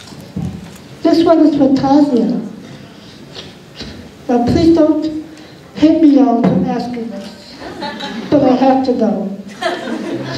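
A young woman speaks into a microphone through loudspeakers in a large room.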